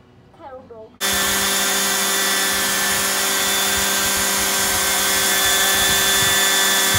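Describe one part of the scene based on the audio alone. A power sander whirs loudly and steadily.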